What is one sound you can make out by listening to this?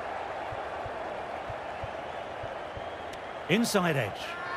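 A bat knocks a cricket ball.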